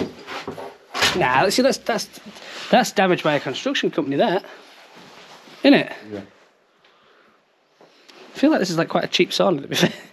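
A man talks in a low voice close by.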